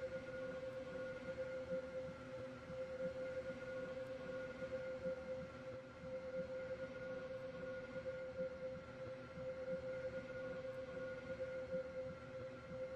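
A train's electric motors hum steadily.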